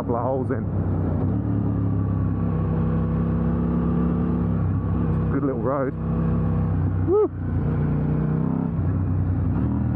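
A motorcycle engine hums steadily, its pitch rising and falling as the speed changes.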